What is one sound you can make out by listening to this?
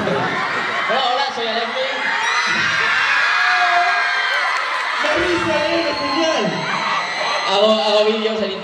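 A large crowd screams and cheers loudly in a big echoing hall.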